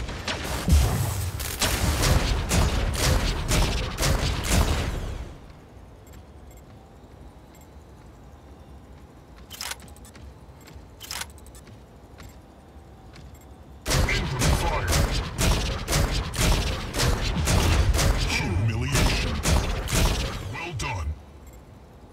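Rapid game gunfire rattles in fast bursts.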